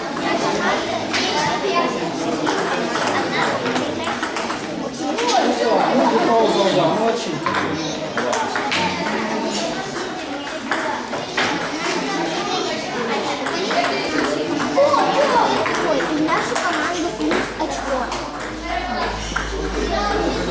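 A table tennis ball clicks back and forth on a table and paddles.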